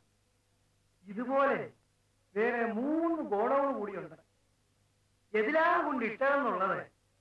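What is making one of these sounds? An elderly man speaks with emotion, close by.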